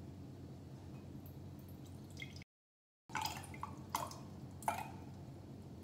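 Water pours from a plastic bottle into a mug.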